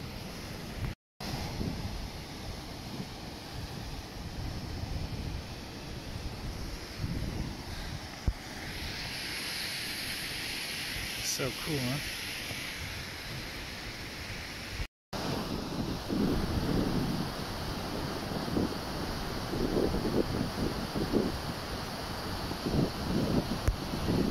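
A river rushes over stones.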